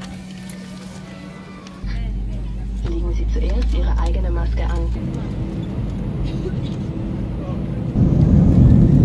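Jet engines hum steadily inside an airliner cabin.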